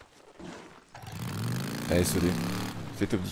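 A motorbike engine rumbles and revs.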